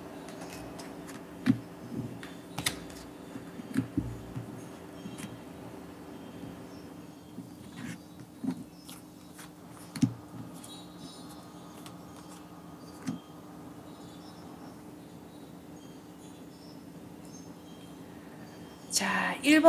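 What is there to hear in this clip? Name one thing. Playing cards slap and slide softly on a table.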